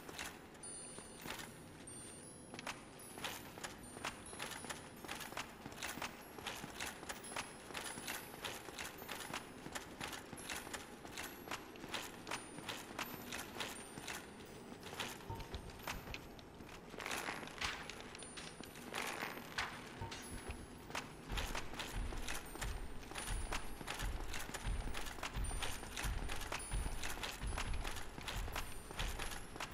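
Armoured footsteps clank in a game.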